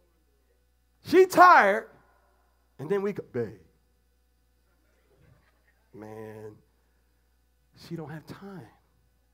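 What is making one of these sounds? A middle-aged man speaks expressively through a headset microphone, in short bursts with pauses.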